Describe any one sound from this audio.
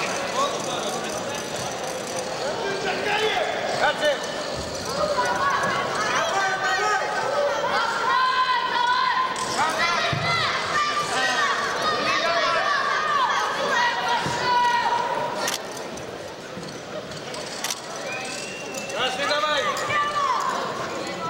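A crowd of men shouts and calls out loudly in a large echoing hall.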